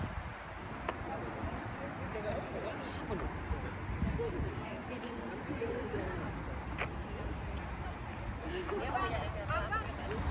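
Men and women chat quietly nearby outdoors.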